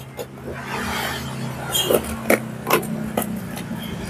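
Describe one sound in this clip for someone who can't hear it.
A box cutter slices through tape on a cardboard box.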